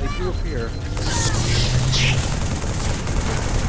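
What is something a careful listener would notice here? A gun fires a loud burst of shots.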